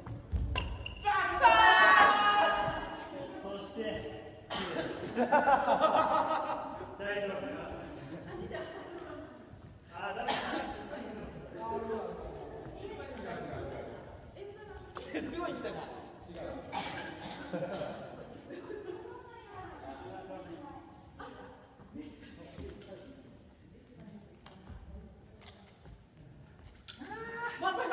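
Shuttlecocks are struck with rackets, making sharp pops.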